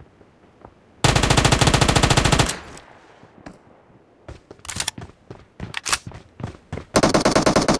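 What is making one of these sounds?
A rifle fires in rapid bursts, close by.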